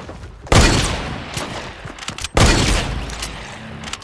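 Gunshots blast loudly in a video game.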